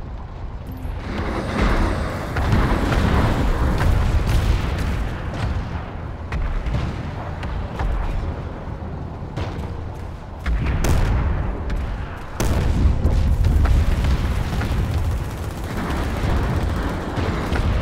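An armored vehicle's engine rumbles close by.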